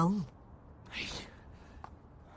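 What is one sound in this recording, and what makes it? A man speaks with agitation nearby.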